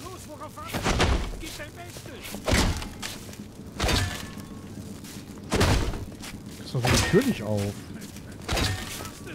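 A man pounds heavy blows against a wall.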